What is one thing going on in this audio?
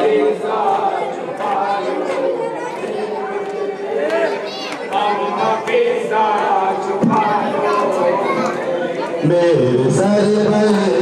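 A crowd of men chant loudly together.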